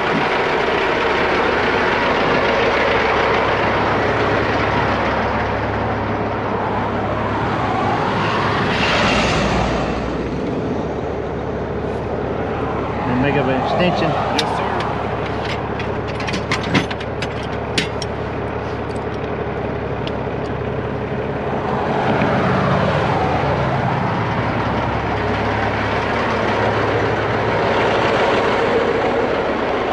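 A large truck engine idles with a steady low rumble.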